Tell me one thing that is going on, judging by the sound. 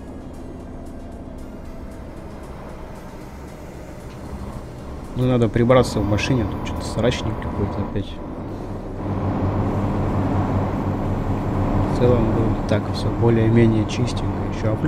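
A truck engine drones steadily at low speed.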